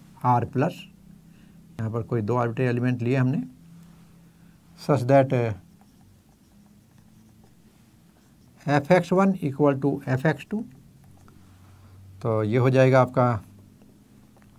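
An elderly man speaks calmly, explaining, close by.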